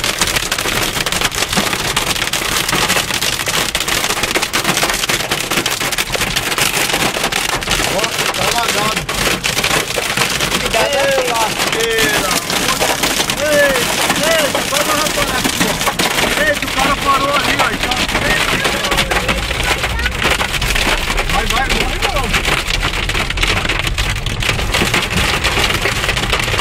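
Heavy rain and hail drum loudly on a car's windscreen and roof.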